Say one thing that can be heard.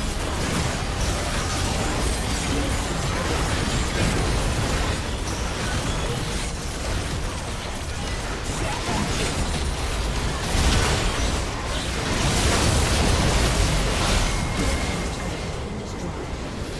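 Game combat effects crackle, whoosh and boom in a rapid, dense jumble.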